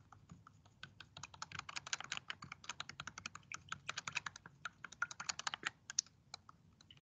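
A stick clinks against a plastic cup while stirring liquid.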